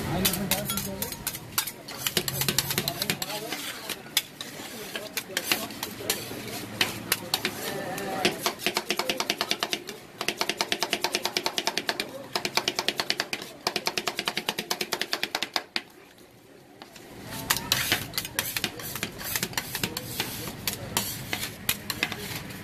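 Metal spatulas tap and scrape rapidly on a cold metal plate.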